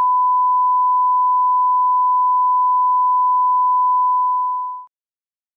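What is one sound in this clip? A steady, high-pitched test tone sounds and then quickly fades away.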